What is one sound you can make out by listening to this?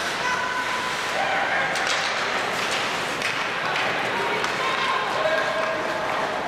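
Skates scrape and hiss across ice in a large echoing arena.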